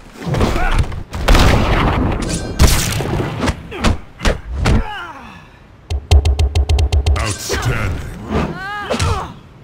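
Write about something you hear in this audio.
Punches and magic blasts hit hard in a fight.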